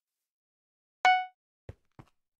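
A short bright chime rings once.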